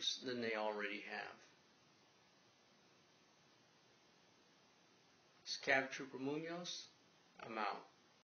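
A middle-aged man speaks calmly and close by, in short phrases with pauses.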